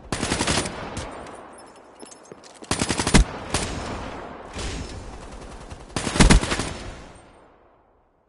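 Rapid gunfire rattles in short bursts, each trailing off in an echo.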